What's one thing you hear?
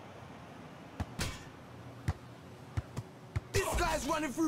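A football thuds as it is kicked and bounces on a hard court.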